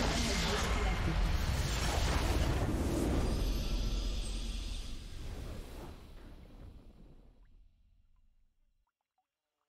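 A triumphant game fanfare swells and fades away.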